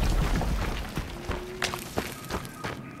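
Footsteps crunch softly on the ground.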